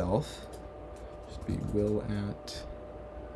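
A young man speaks calmly and close to a microphone.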